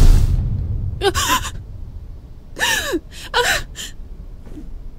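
A young woman speaks in a distressed, worried voice.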